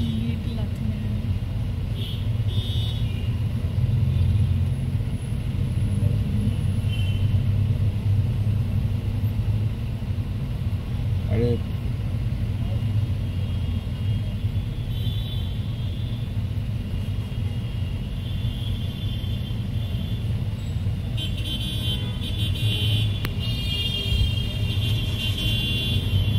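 City traffic rumbles past.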